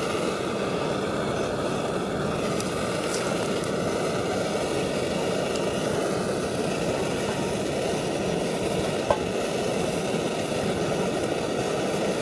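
A gas camping stove burns with a steady roar.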